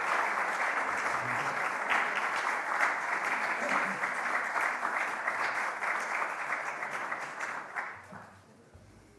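A crowd applauds in a room.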